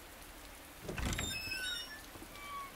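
A heavy door swings open.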